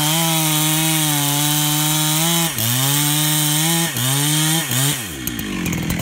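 A chainsaw engine runs loudly close by, its pitch dipping briefly now and then before it winds down.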